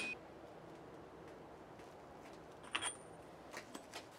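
A socket clinks against metal.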